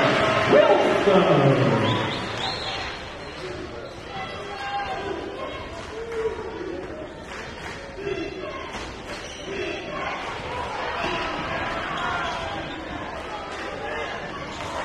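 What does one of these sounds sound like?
A ball bounces on a wooden floor.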